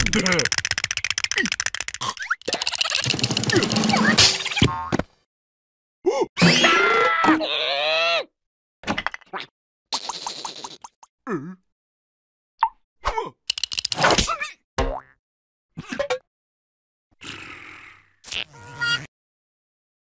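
Cartoon creatures babble and squeal in high, silly voices.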